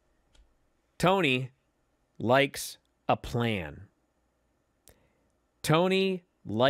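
A man speaks with animation, close into a microphone, in short bursts.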